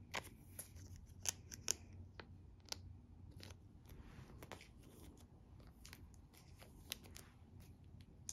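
Plastic sleeves crinkle and rustle as cards are handled.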